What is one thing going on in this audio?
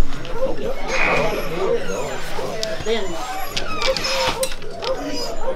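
A dog bays loudly close by.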